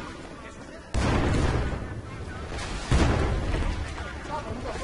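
A loud explosion booms and rumbles close by.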